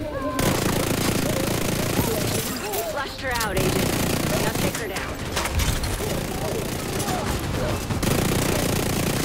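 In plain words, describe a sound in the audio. Automatic gunfire rattles rapidly and loudly.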